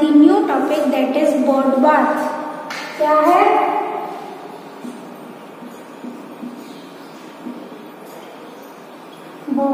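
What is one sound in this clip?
A young woman speaks clearly and closely, as if teaching.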